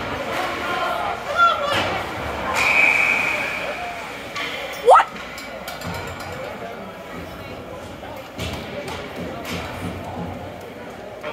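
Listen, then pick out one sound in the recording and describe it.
Spectators chatter in a large echoing hall.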